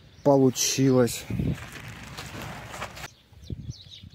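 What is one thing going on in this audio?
A plastic sheet rustles and crinkles.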